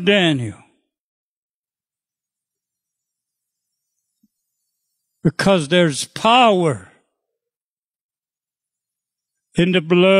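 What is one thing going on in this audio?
An elderly man speaks slowly and expressively into a microphone, with long pauses.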